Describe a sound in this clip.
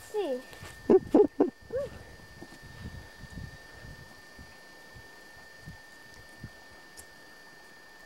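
Footsteps thud softly on wooden logs.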